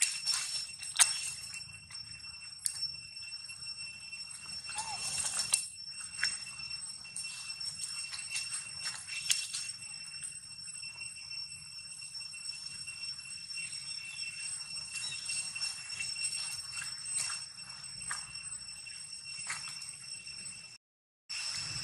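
Dry leaves rustle as monkeys move about on the ground.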